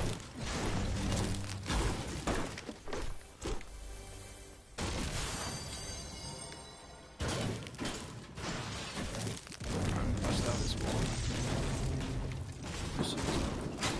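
A pickaxe strikes a wall again and again.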